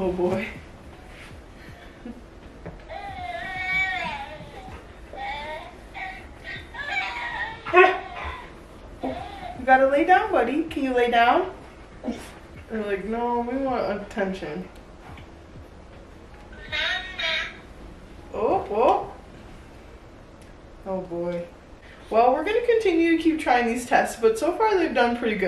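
A young woman talks and laughs close by.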